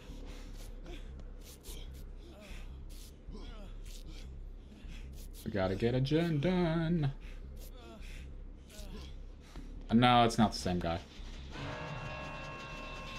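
A young man talks calmly into a microphone.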